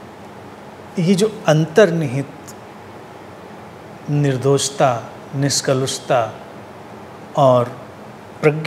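A middle-aged man speaks calmly and close to a microphone, in short phrases with pauses.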